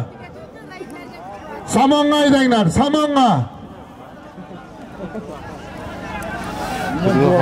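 A crowd of people calls and chatters outdoors.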